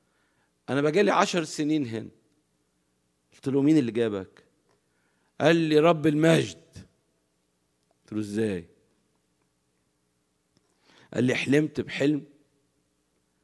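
An elderly man speaks slowly and calmly into a microphone, pausing between phrases.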